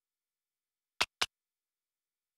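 Two short electronic clicks sound in quick succession.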